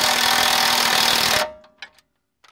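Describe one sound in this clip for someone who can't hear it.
An impact wrench rattles loudly.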